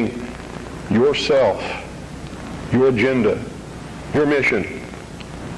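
A middle-aged man speaks forcefully into a microphone in short bursts, with pauses between phrases.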